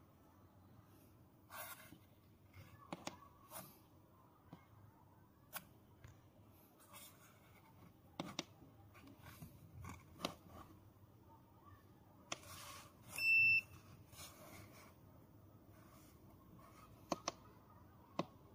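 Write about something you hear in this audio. Fingers tap and click buttons on a device.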